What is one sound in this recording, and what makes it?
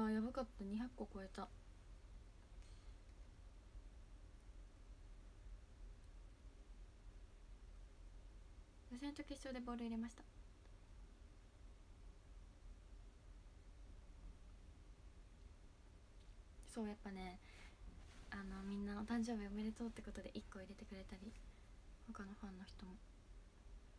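A young woman speaks softly and calmly in short bursts, close to a microphone.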